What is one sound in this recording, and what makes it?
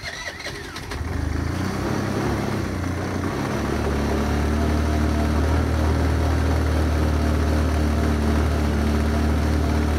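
A scooter engine sputters to life and runs with a steady, rough idle.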